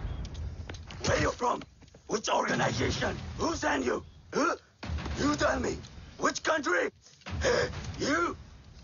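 Men shout and grunt in a scuffle.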